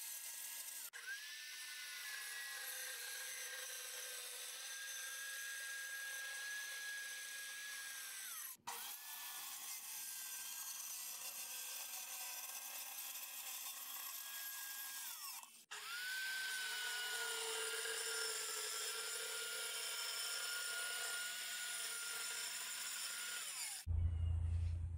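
A circular saw cuts through plywood.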